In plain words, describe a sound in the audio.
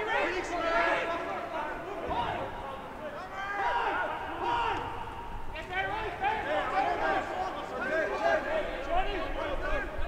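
Young men shout and call to each other outdoors on a playing field.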